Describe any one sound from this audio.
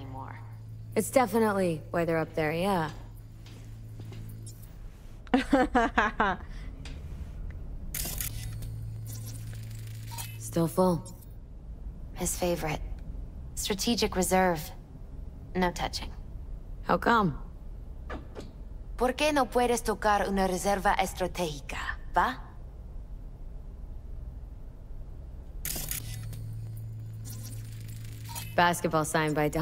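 A young woman talks calmly and with animation into a close microphone.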